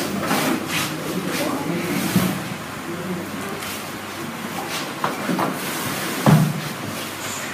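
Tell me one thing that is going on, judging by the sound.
Children chatter and murmur.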